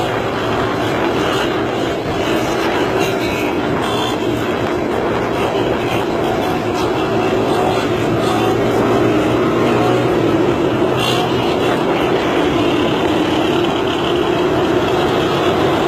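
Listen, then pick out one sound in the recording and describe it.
A small single-cylinder motorcycle drones along at speed.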